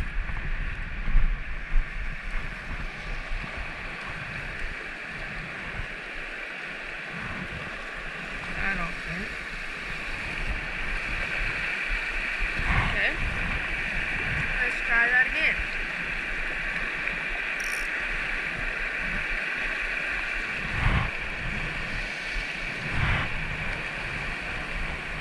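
A stream rushes and splashes over rocks close by.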